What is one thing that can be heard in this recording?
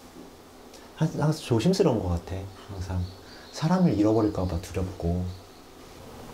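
A man speaks calmly and softly through a microphone.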